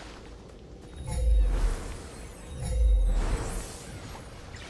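A magical shield bursts up with a deep rushing whoosh.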